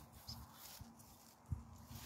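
Garden shears snip through a plant stem.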